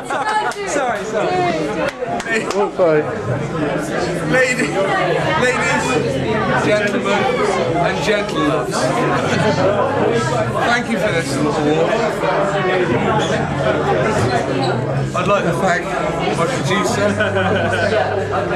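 Several people chatter in a busy room.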